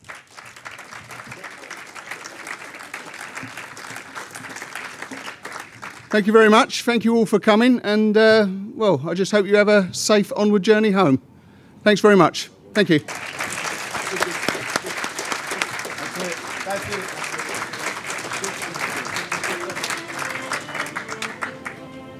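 A crowd applauds in a large hall.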